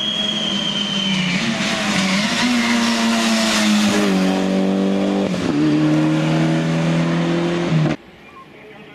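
A racing car engine roars close by at full throttle, dropping in pitch with each gear change.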